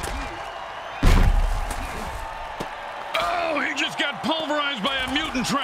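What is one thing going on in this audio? Armored players crash together in a heavy tackle.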